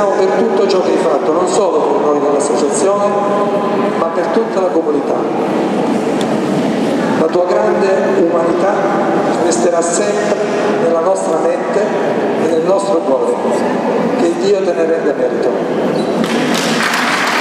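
A middle-aged man speaks into a microphone over loudspeakers in a large echoing hall.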